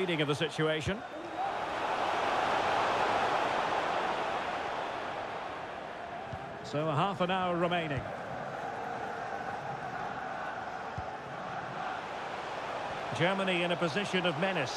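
A stadium crowd roars and murmurs throughout.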